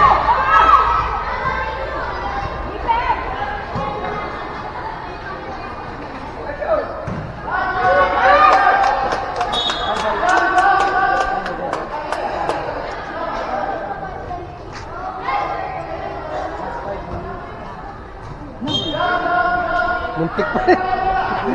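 Young players shout and call out across a large echoing covered court.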